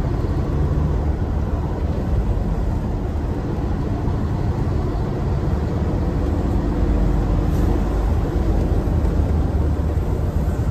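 Tyres rumble on a wet road.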